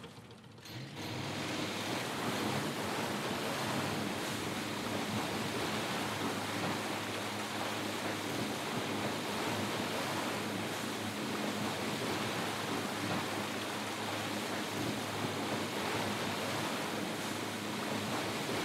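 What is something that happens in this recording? Water rushes and sprays against a speeding boat's hull.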